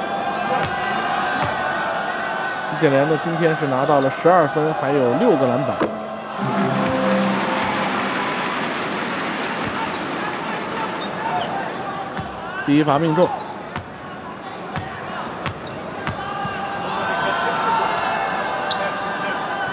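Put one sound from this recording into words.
A large crowd murmurs and chants in an echoing arena.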